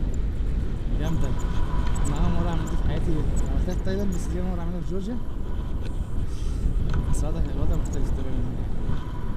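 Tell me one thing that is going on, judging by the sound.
A young man talks close by over the wind.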